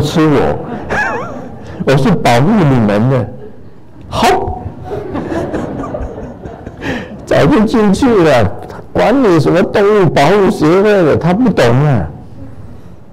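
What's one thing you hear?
An elderly man speaks calmly and with feeling into a microphone.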